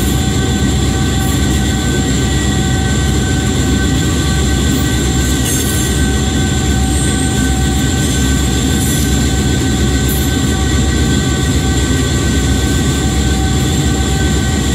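Train wheels roll and clatter over rails.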